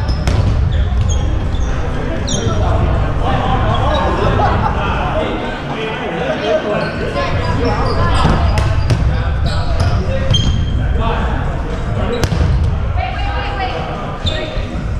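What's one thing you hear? Young men and women shout and call out across the hall.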